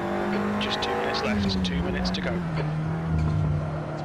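Tyres squeal briefly through corners.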